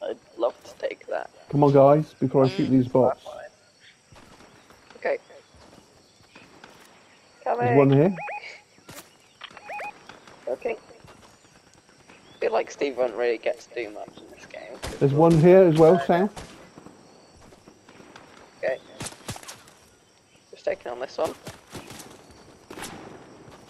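Footsteps patter quickly through grass.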